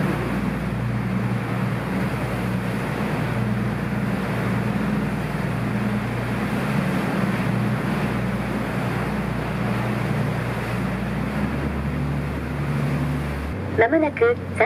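A tour boat's engine rumbles.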